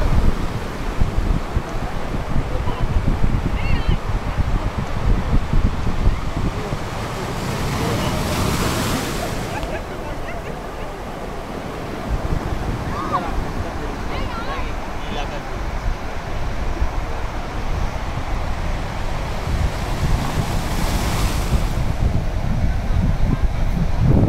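Waves wash onto a beach.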